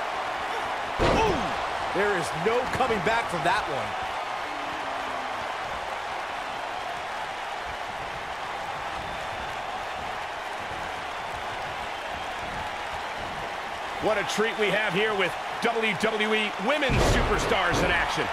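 A body slams heavily onto a wrestling mat.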